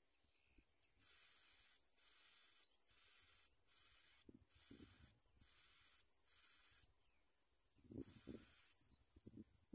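Baby birds chirp and squeak in high, rapid bursts.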